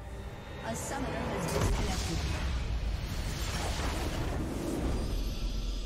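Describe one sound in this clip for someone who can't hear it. A crystal structure shatters and explodes with a loud rumbling burst.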